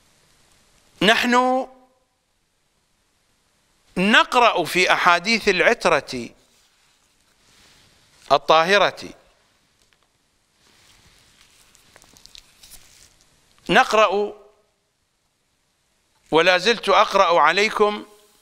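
An elderly man recites in a melodic voice through a microphone, in short phrases with pauses between them.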